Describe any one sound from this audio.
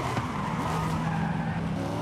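Car tyres screech while drifting around a corner.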